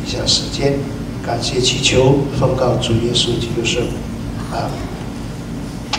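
An elderly man speaks calmly through a microphone in an echoing hall.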